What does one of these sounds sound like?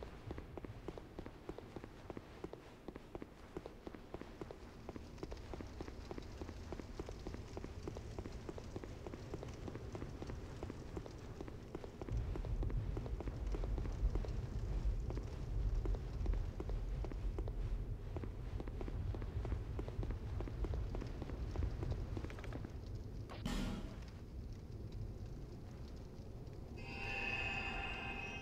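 A deep rumbling drone echoes through a cavern.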